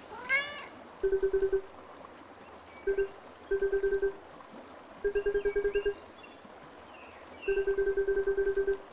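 Rapid electronic blips chatter in short bursts, like game dialogue text ticking out.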